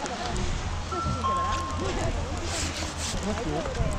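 Skis and snowboards scrape and click on snow.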